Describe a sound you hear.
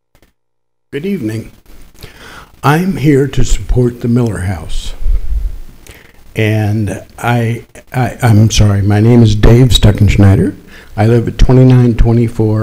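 A man speaks calmly into a microphone, heard over loudspeakers.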